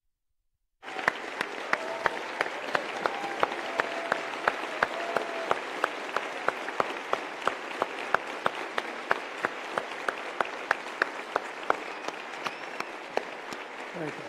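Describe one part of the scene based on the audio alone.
A crowd claps together in a steady rhythm in a large echoing hall.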